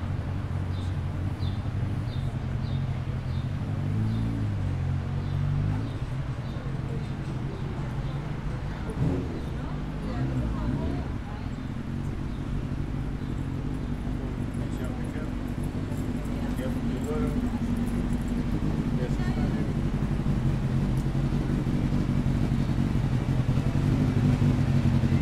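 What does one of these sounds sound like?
City traffic hums steadily outdoors.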